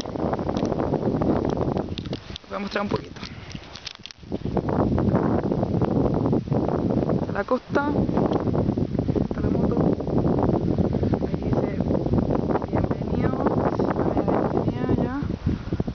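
Strong wind rumbles and buffets outdoors.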